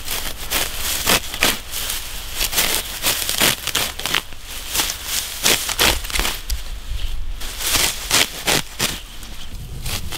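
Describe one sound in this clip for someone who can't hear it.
A blade cuts through grass with sharp snips.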